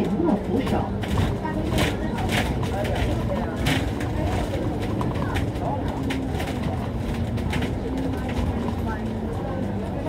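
A bus engine rumbles steadily as the bus drives along.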